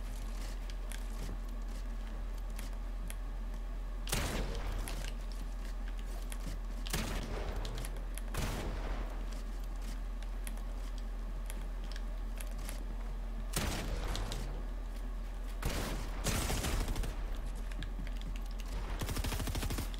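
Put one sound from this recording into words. Building pieces snap into place with quick, sharp clicks.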